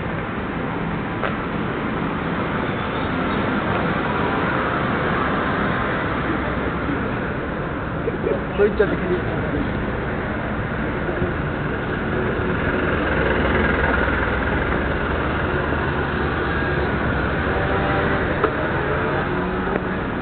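A busy street hums with steady crowd noise and distant traffic outdoors.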